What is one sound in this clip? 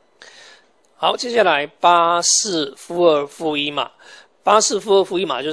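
A man speaks calmly and close into a clip-on microphone.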